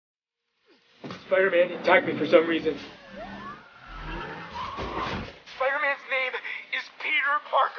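A man speaks tensely, heard through a loudspeaker.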